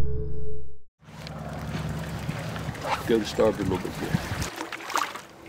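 Water ripples and laps close by.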